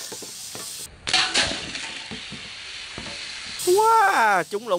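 Liquid sprays and hisses from a punctured can.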